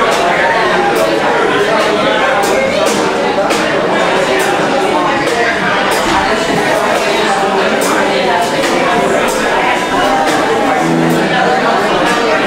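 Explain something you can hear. A drummer hits cymbals and drums in a steady beat.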